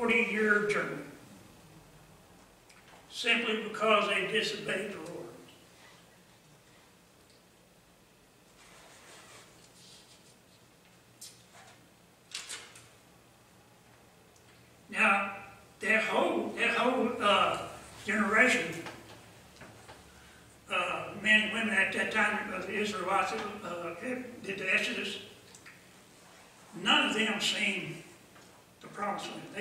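An elderly man speaks calmly through a microphone in a room with a slight echo, pausing between phrases.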